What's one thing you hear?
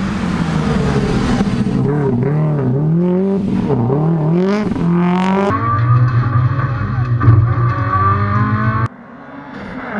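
A turbocharged flat-four Subaru rally car revs hard up a hill, its engine rising and falling through gear changes.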